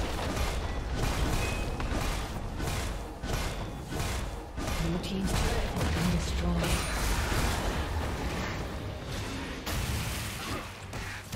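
Game spells and strikes clash in a fast, busy fight.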